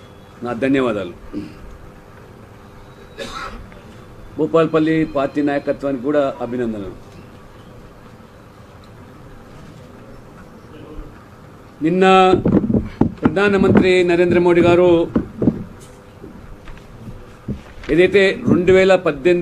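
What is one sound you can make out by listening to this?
A middle-aged man speaks calmly into microphones, with pauses between phrases.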